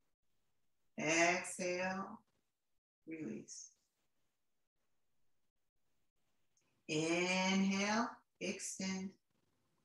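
A young woman speaks calmly, as if instructing.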